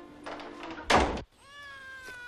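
A wooden door shuts with a thud.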